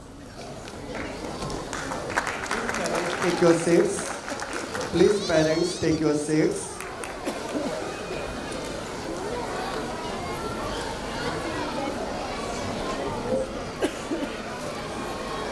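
A large crowd murmurs and cheers.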